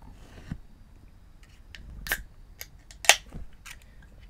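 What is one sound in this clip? A drink can opens with a sharp click and hiss.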